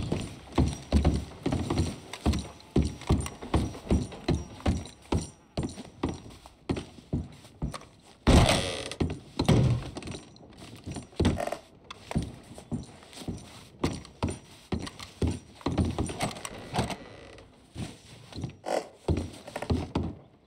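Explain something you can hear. Boots thud on creaking wooden stairs and floorboards.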